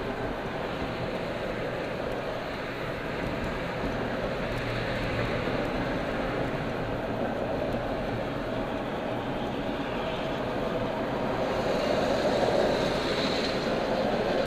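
Road noise rumbles steadily from inside a car driving on a highway.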